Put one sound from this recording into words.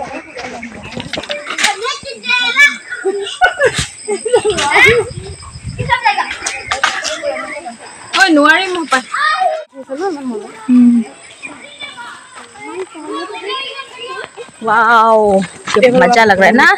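Women talk with animation close by, outdoors.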